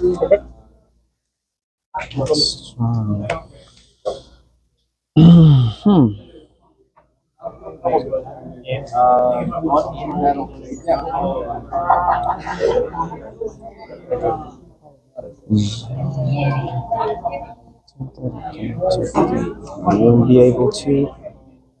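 Young men talk casually across a table, close by.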